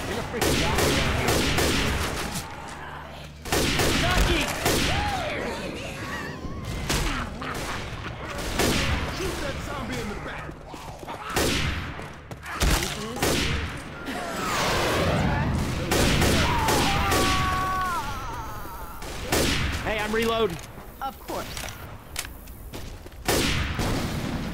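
A rifle fires loud, sharp shots again and again.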